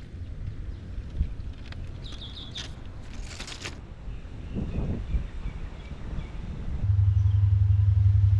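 Wind rumbles across an outdoor microphone.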